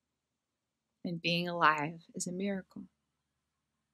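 A young woman speaks softly and emotionally close to the microphone.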